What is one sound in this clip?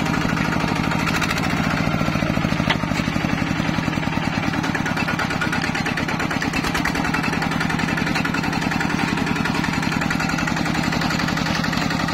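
A small diesel engine chugs steadily and loudly close by.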